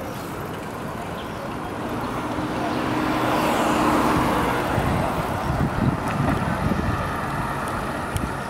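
Wind rushes steadily past outdoors.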